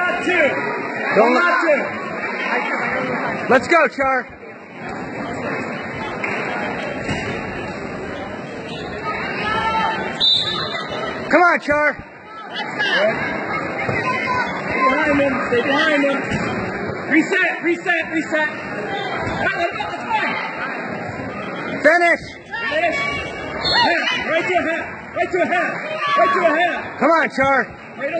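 A man close by shouts encouragement.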